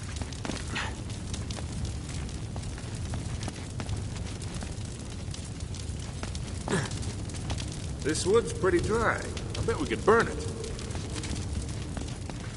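Footsteps scuff on a stone floor.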